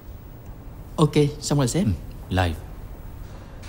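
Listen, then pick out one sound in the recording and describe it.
A young man speaks briefly with animation, close by.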